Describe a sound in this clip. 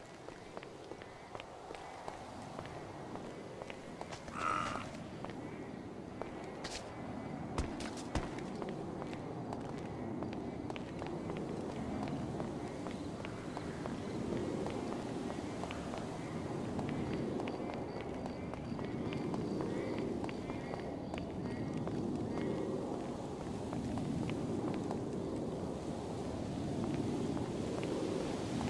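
Footsteps patter quickly on hard stone.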